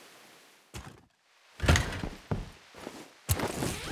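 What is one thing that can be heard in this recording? A wooden crate is opened.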